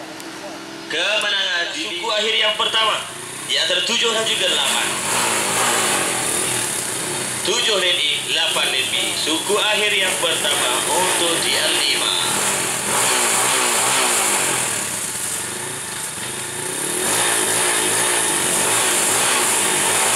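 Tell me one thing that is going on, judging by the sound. Motorcycle engines rev in sharp bursts close by.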